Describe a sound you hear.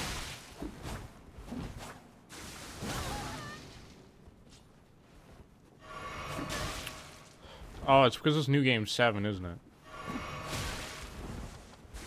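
Blades swish through the air in quick slashes.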